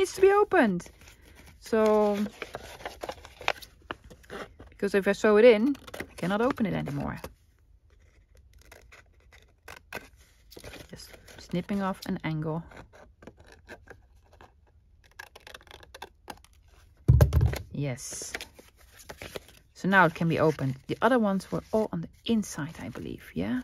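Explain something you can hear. Paper rustles and crinkles as pages and cards are handled.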